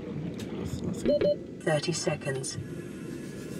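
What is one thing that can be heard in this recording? A warning alarm beeps in quick electronic tones.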